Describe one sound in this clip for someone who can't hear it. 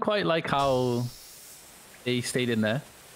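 A gas hisses out in a short spray.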